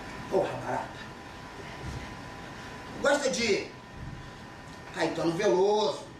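A man speaks with emotion, heard from a distance in a room with some echo.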